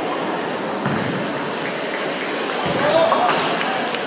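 Bowling balls roll down lanes and knock over pins with a crash.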